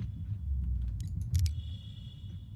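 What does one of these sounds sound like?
A button clicks when pressed.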